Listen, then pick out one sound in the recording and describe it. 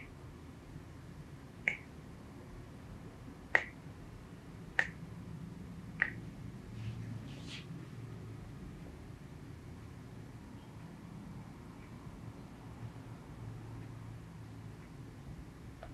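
Hands rub and knead a bare foot softly.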